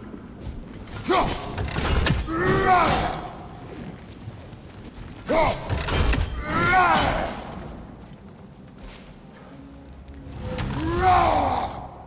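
A heavy axe swings and strikes with loud thuds.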